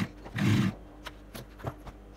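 Scissors snip a thread.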